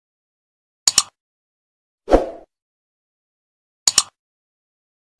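A computer mouse clicks twice.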